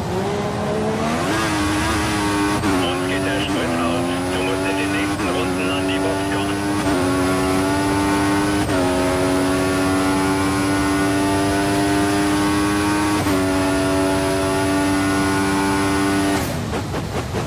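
A racing car engine revs up, climbing in pitch through quick gear shifts.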